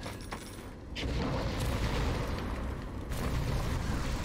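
Flames roar and crackle in a burst of fire.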